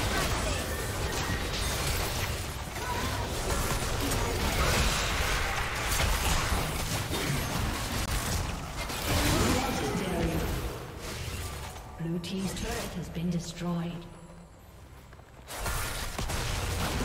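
Magic blasts and clashing blows burst in a fast, busy fight.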